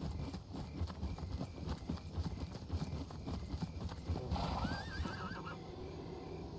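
Footsteps rustle through grass and undergrowth.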